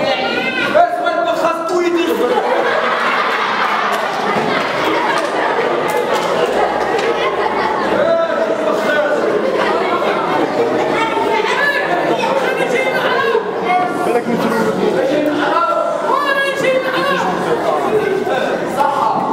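A young woman sings through a loudspeaker in an echoing hall.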